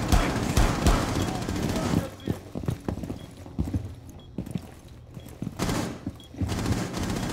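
Footsteps thud on a hard floor indoors.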